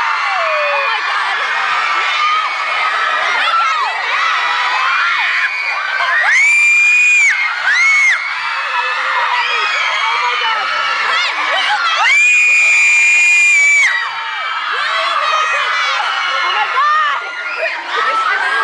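A crowd of young fans screams loudly and shrilly nearby.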